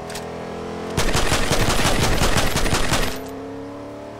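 A shotgun fires in rapid blasts.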